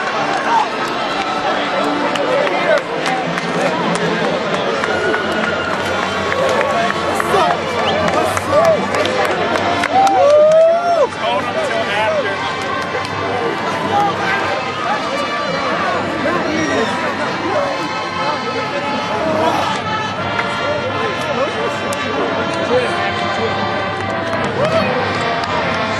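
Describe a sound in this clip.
A crowd of young men chatter and shout excitedly outdoors.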